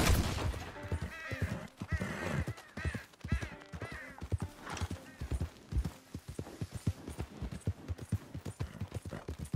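A horse gallops on a dirt track, its hooves thudding.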